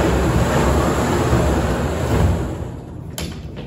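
Plastic balls rattle and tumble inside a turning drum.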